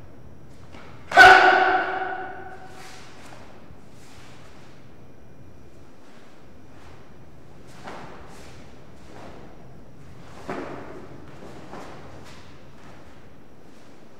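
Bare feet thud and slide on the floor.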